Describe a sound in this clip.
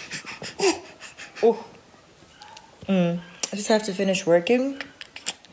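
A baby babbles and squeals.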